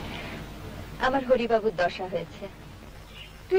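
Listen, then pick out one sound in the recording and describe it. A second young woman speaks.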